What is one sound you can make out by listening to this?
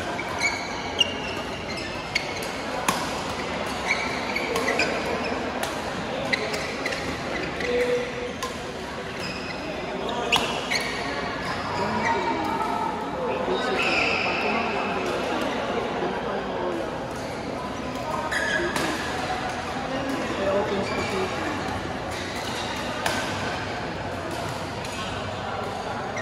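Shuttlecocks are struck with sharp pops of rackets in a large echoing hall.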